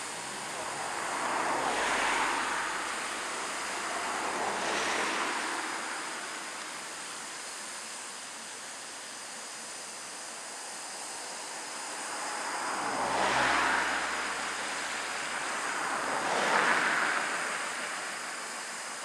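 Steam bursts from a locomotive in loud, rushing puffs now and then.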